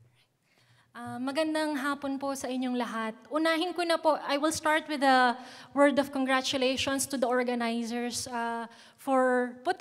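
A young woman speaks calmly into a microphone in a large hall.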